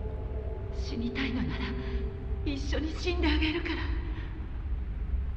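A young woman speaks softly and sadly.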